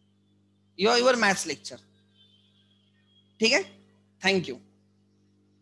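A young man speaks calmly into a headset microphone in short bursts.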